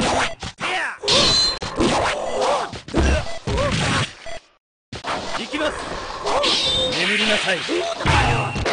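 Swords slash and clash sharply.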